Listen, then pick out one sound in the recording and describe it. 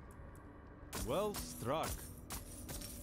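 A young man speaks casually, close to a microphone.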